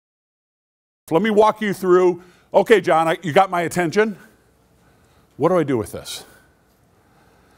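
An older man speaks with animation through a microphone.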